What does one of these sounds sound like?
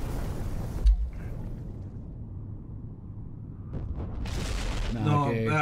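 A deep explosion booms and rumbles.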